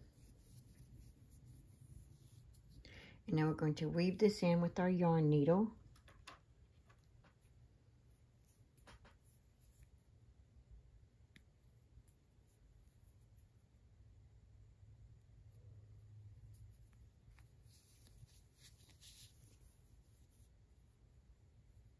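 Yarn rustles softly as a needle pulls it through crocheted fabric.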